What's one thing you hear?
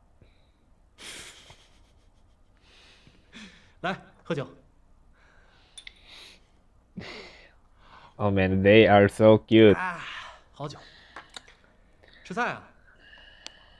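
A young man talks casually close by.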